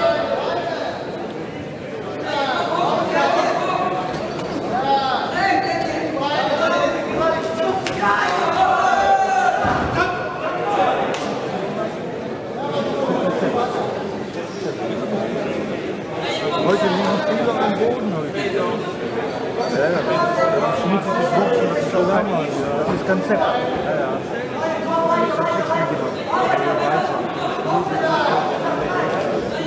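A man talks with animation into a microphone, heard over a loudspeaker in an echoing hall.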